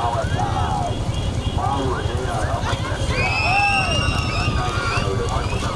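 Bulls' hooves clatter on asphalt as a racing bullock cart trots past.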